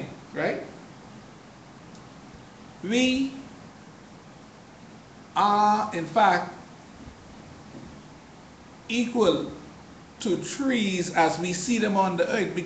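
A man speaks close to a microphone, in short bursts with pauses.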